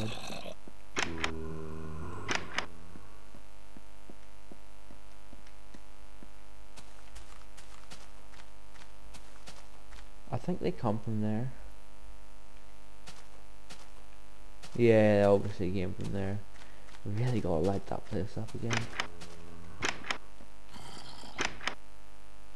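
A wooden door clicks open and shut.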